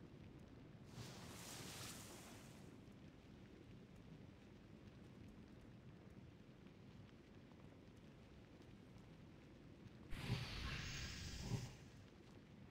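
Magic spells whoosh and crackle in short bursts.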